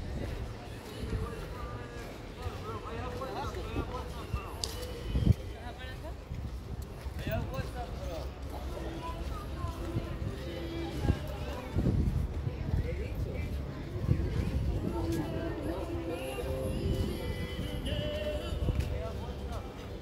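Footsteps scuff on paving nearby.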